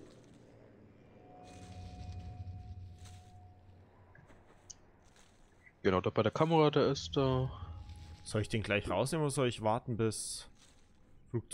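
Leaves rustle as someone crawls through dense bushes.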